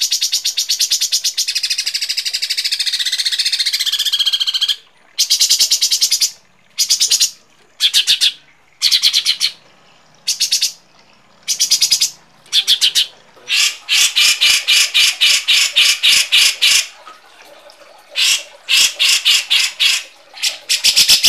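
Small birds chatter in harsh, rapid bursts of high chirps, close by.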